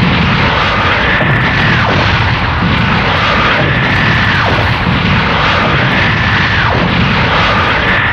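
An energy beam fires with a loud, steady roar.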